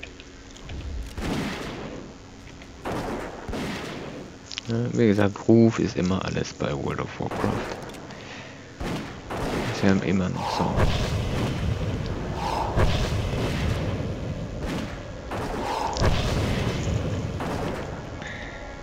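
Weapons strike and clash in a game battle.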